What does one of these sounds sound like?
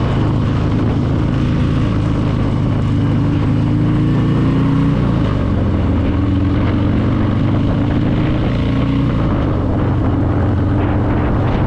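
A motorcycle engine rumbles steadily while riding along a road.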